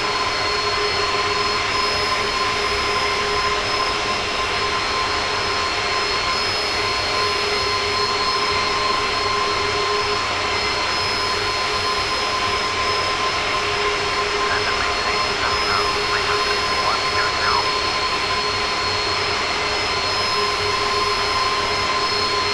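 Jet engines roar steadily as an airliner flies.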